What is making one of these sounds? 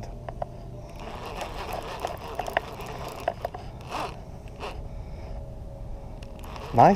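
A fishing reel clicks softly as its handle is turned.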